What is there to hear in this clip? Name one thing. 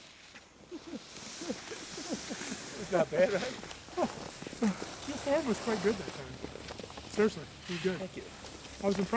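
Skis scrape and hiss across packed snow.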